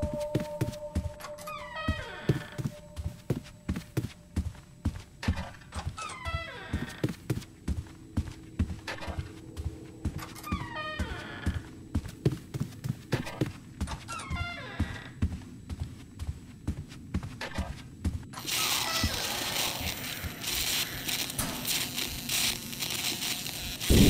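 Footsteps walk quickly across a hard floor.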